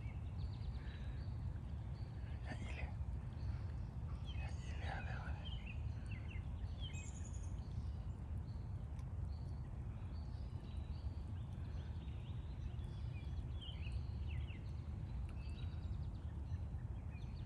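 A broad river flows past.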